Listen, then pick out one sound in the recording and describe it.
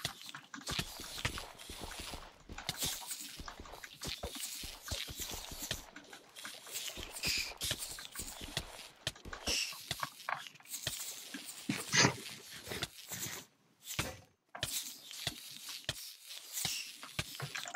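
Water splashes and sloshes as someone wades through it.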